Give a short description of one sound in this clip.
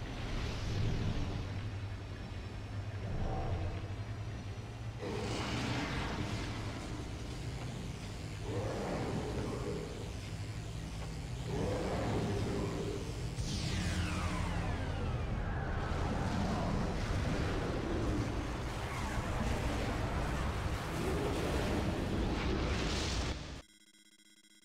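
A deep rumble of a collapse shakes the ground.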